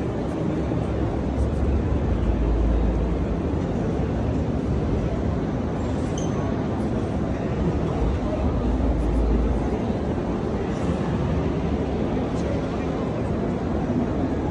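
A crowd murmurs and chatters throughout a large, echoing hall.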